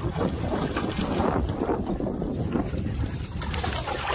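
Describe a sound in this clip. Water splashes as a fish thrashes at the surface.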